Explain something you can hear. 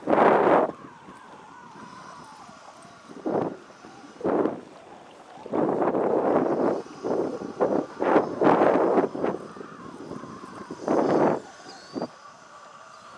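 Wind gusts in bursts across the open water.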